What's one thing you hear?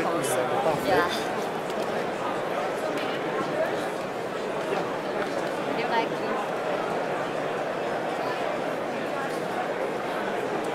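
A crowd of adults chatters all around.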